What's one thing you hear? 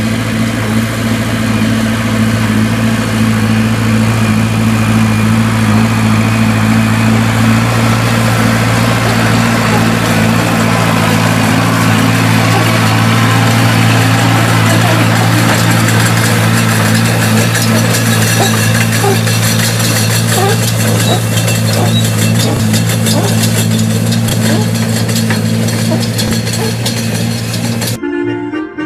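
A diesel engine drones steadily close by.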